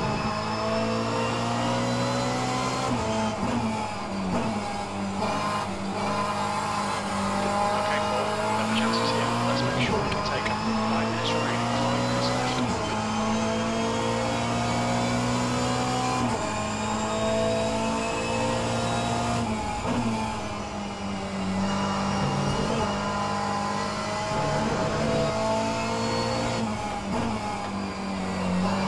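A racing car engine roars steadily, rising and dropping in pitch through gear changes.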